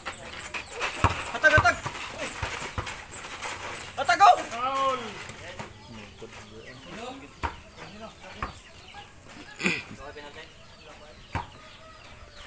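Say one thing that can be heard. A basketball bounces on hard dirt.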